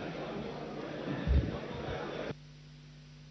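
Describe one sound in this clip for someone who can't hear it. A crowd of men and women murmurs and chatters in a large echoing hall.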